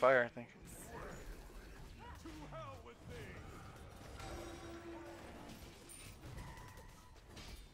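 Video game spell blasts whoosh and crackle during a fight.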